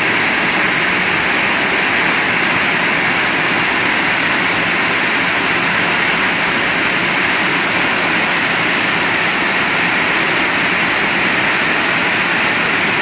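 Heavy rain pours steadily outdoors, splashing on wet pavement.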